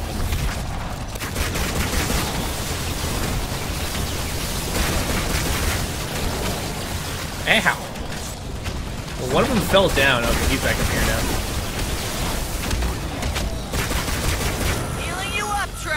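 Gunfire and explosions boom from a video game.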